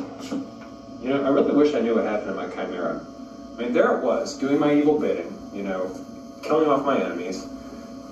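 A young man talks casually at close range.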